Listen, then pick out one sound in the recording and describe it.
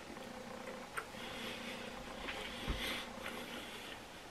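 A young man chews food close by.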